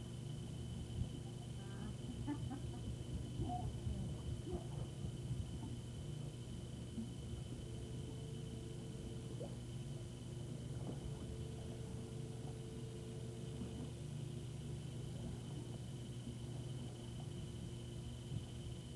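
Water splashes softly as a person swims.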